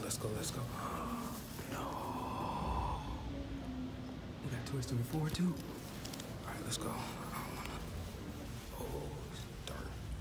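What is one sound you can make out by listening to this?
A young man talks close by, casually.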